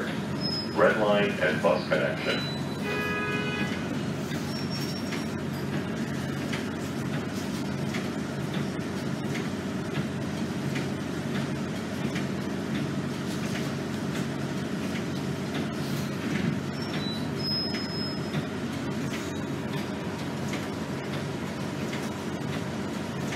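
A bus engine rumbles steadily while the bus drives.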